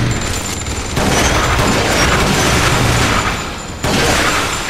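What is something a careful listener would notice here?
A rifle fires single loud shots.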